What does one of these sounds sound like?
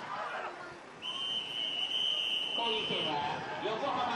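A referee's whistle blows a long, steady blast.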